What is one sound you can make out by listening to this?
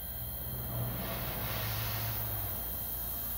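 A paintbrush brushes softly across a canvas.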